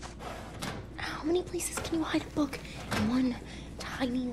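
A young woman speaks with curiosity.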